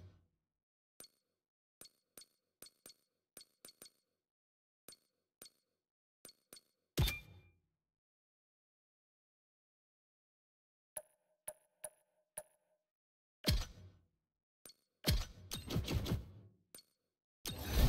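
Short menu clicks tick as selections move.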